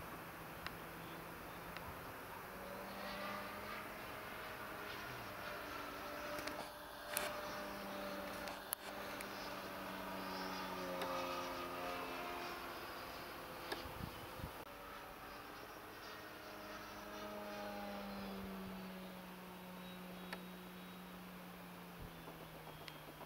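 A propeller plane engine drones overhead, rising and falling in pitch as it passes.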